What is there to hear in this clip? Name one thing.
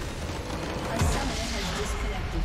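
A large crystal explodes and shatters with a deep boom.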